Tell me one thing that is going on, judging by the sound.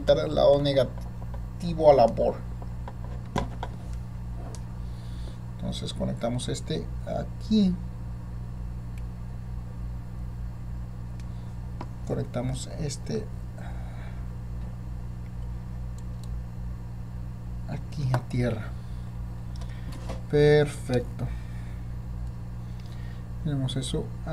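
A man speaks calmly and briefly, close by.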